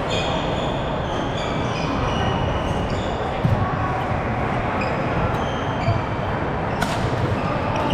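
Sneakers squeak sharply on a wooden court floor.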